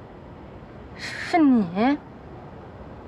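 A young woman speaks with a rising, questioning voice.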